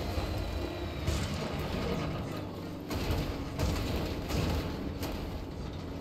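Tyres crunch and bump over rocks.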